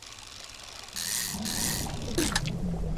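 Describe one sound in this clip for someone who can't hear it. Water splashes and churns around a small boat.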